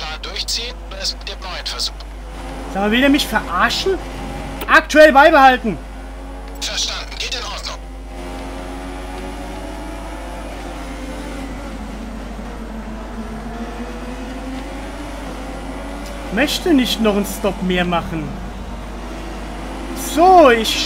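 A racing car engine whines steadily, rising and falling in pitch as it shifts gears.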